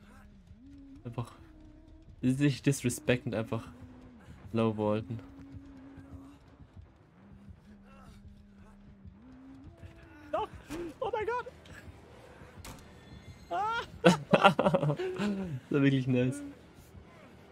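A young man talks and laughs with animation into a close microphone.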